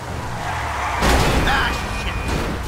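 A van crashes into a car with a loud bang.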